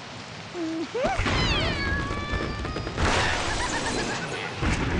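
A slingshot stretches and launches with a whoosh.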